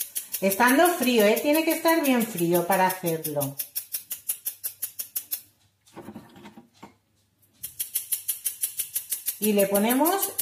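A woman speaks in a lilting, sing-song voice close by.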